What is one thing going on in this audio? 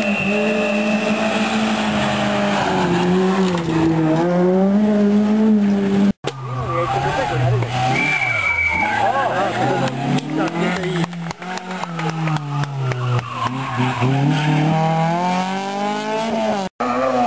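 A rally car engine roars and revs hard as it races past.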